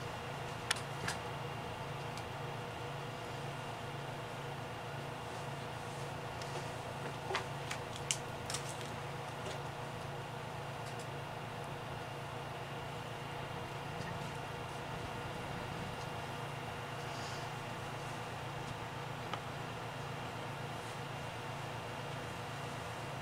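A projector fan hums steadily.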